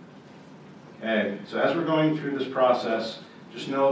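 A man speaks to an audience.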